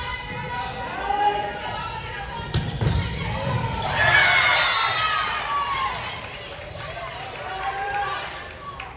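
Young women shout and cheer loudly.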